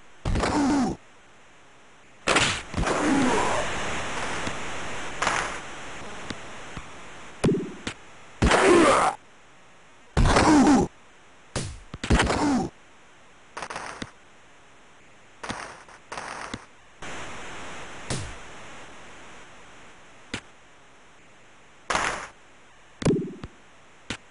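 A hockey stick slaps a puck in a video game.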